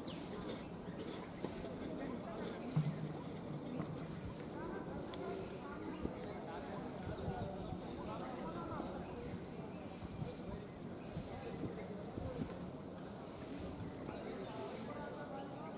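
Several men talk among themselves at a distance outdoors.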